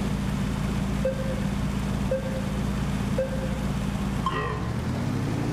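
Three short beeps count down, followed by a higher start tone.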